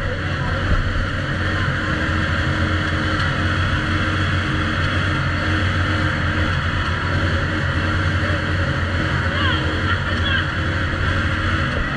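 A small engine runs nearby with a steady, loud drone.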